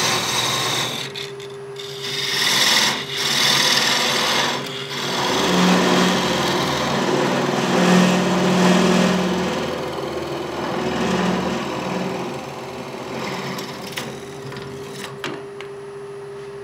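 A chisel scrapes against spinning wood on a lathe.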